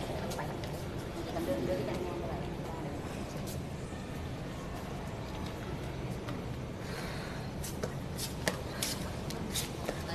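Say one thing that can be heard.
Young boys talk to each other in an echoing hall.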